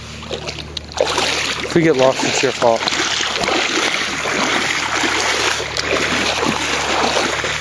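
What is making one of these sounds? Feet splash and slosh through shallow water.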